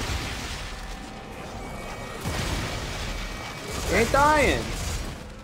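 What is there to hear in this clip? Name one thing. An electric beam weapon crackles and zaps.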